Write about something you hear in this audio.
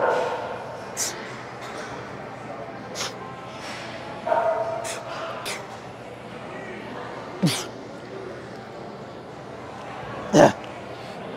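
Metal weights clank in a large echoing room.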